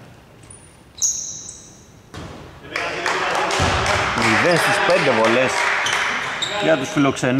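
Sneakers squeak sharply on a hardwood court in a large echoing hall.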